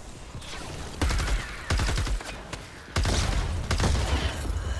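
A weapon fires rapid bursts of shots.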